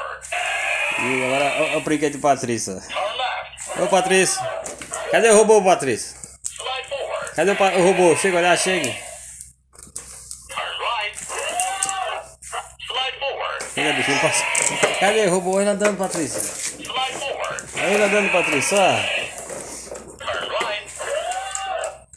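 A toy robot plays a cheerful electronic tune close by.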